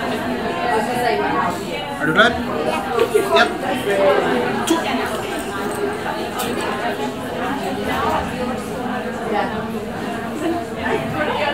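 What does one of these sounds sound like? A crowd of people chatters in the background of a large room.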